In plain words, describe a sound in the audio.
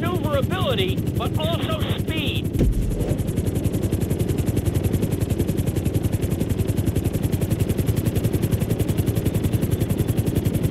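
A helicopter's rotor blades thump rapidly and steadily.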